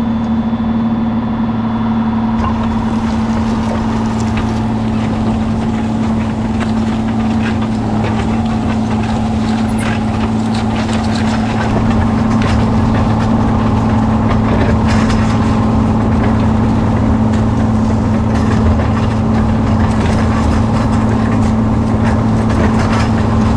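Plough discs scrape and crunch through soil.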